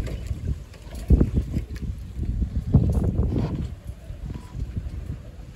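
Many fish splash and churn at the water's surface.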